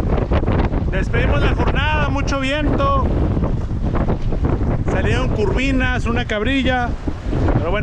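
A middle-aged man talks with animation, close by.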